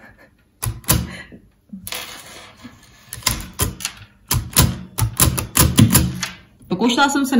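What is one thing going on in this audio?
Keys of a braille writer clack sharply as they are pressed.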